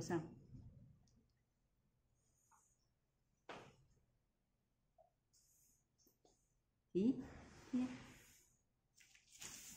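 A brush softly strokes across paper.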